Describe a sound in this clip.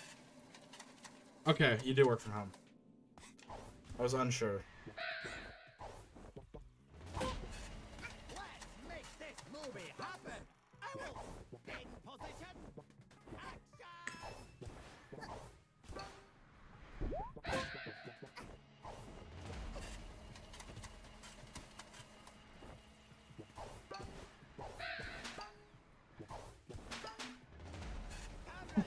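Video game sound effects pop and clatter in quick bursts.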